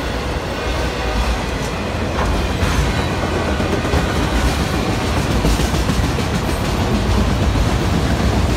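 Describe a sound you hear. A long freight train rumbles and clatters steadily past close by.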